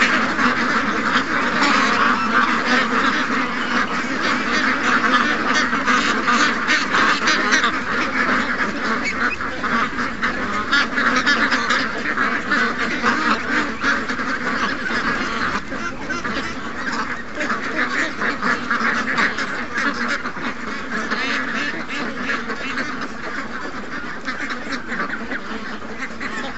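A large flock of ducks quacks loudly and constantly, close by.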